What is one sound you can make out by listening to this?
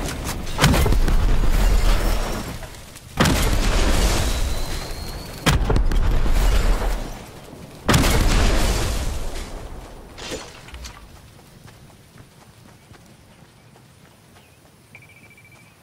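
Footsteps run quickly over hard ground and grass.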